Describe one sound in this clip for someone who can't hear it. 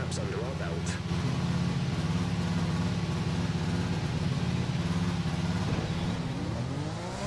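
A racing car engine idles with a low, rapid throb.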